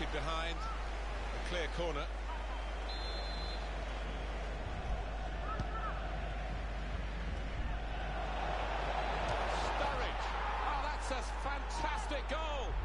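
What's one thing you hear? A stadium crowd roars steadily and swells louder.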